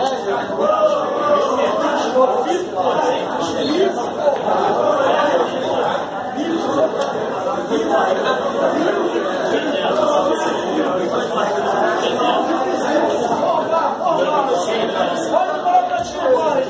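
Several men talk loudly over one another nearby.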